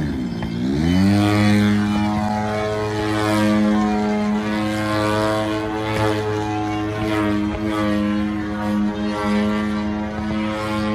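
A model plane's engine hums steadily as the plane flies high overhead.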